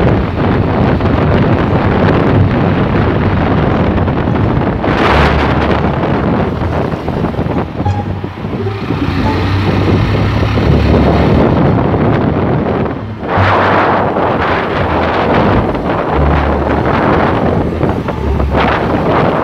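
A motorcycle engine drones steadily up close.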